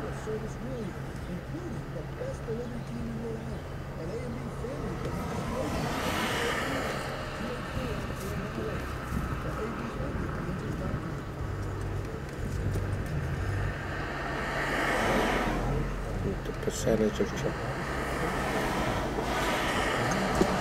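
Cars swoosh past nearby, one after another.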